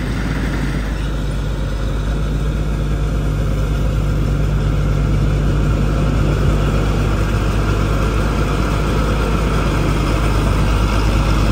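Machinery on a harvester clatters and whirs while cutting.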